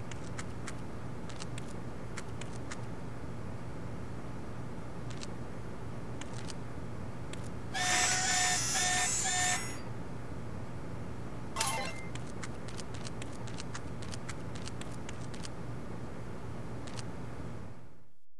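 Footsteps tap lightly on a wooden floor.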